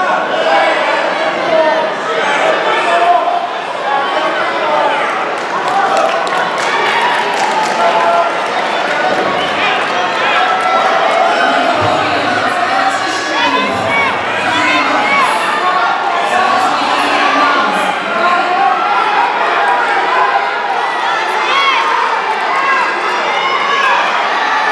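A crowd of spectators murmurs and chatters throughout an echoing hall.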